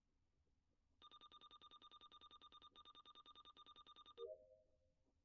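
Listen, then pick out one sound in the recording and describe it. A game counter ticks rapidly as a number counts up.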